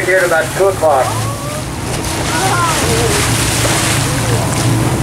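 Waves slosh and lap on open water.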